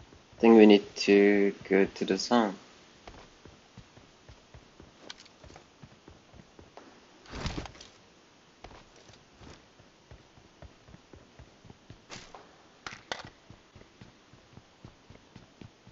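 Footsteps patter quickly and steadily on hard ground.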